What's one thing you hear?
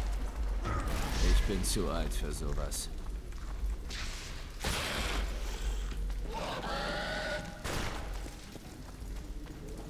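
A fire bursts up and roars.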